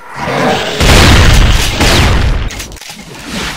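An explosion booms loudly and rumbles.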